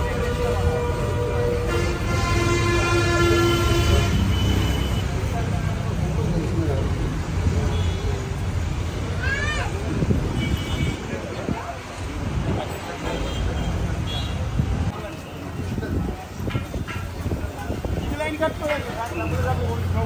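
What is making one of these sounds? A crowd of men chatters nearby outdoors.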